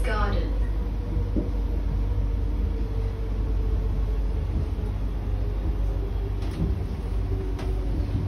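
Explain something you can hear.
A metro train's traction motors whine steadily.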